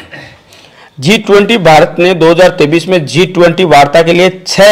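A man reads out loud and fast, close to a microphone.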